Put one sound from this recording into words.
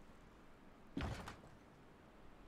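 A young man makes a short, loud sound close to a microphone.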